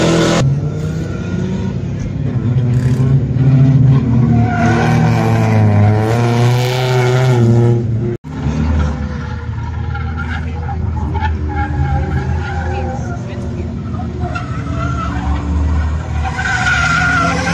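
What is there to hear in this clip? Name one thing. A car engine revs hard and loud, rising and falling in pitch.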